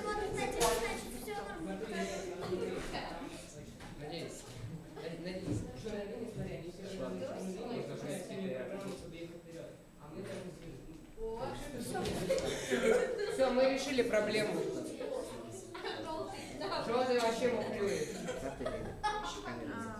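Children and teenage boys chatter nearby in a room.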